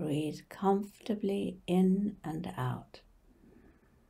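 An elderly woman speaks calmly and close to a microphone.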